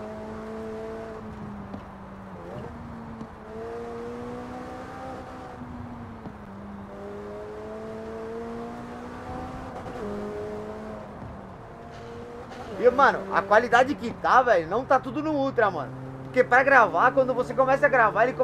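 A sports car engine roars steadily, its pitch dropping and climbing with each gear change.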